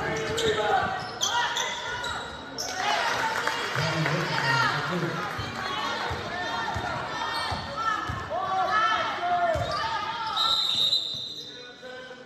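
A basketball bounces with hollow thuds in an echoing gym.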